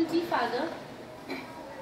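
A teenage girl speaks briefly and expressively.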